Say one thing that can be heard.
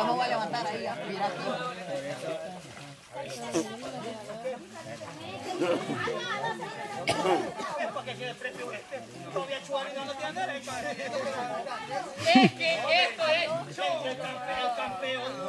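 A group of young men talk and shout with excitement outdoors.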